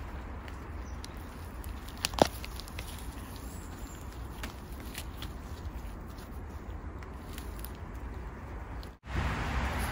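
Gloved fingers rustle and crackle through dry moss and pine needles close by.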